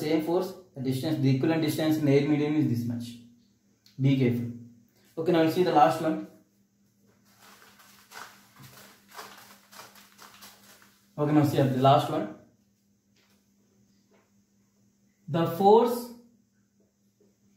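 A young man speaks calmly and clearly close by, in pauses.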